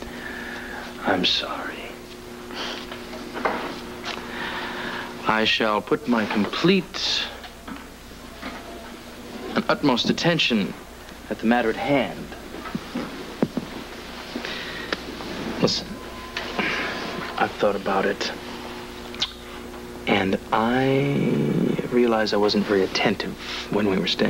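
A man speaks softly up close.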